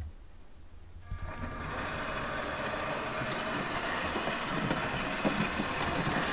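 A model locomotive hums as it rolls along the track.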